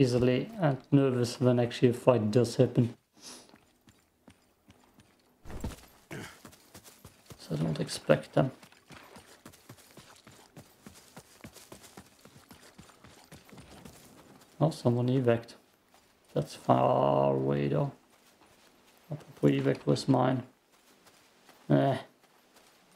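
A young man talks with animation, close to a microphone, in short bursts.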